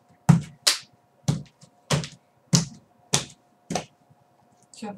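A young woman slaps her chest with her hand in a quick, steady rhythm.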